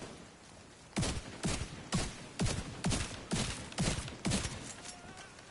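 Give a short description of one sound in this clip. A rifle fires shot after shot at a steady pace.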